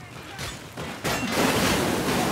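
A flamethrower roars with a rushing burst of fire.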